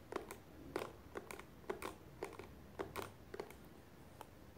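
A hairbrush brushes close against a microphone with soft scratchy strokes.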